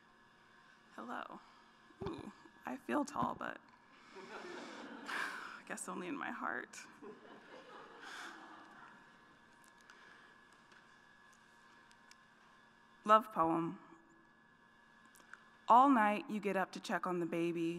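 A young woman speaks calmly into a microphone in a large echoing hall.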